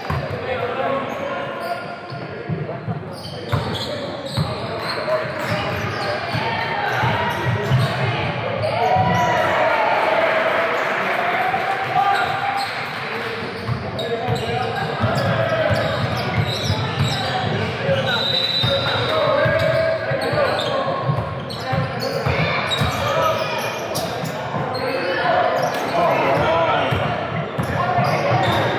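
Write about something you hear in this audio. Basketball players' sneakers squeak on a hardwood court in a large echoing gym.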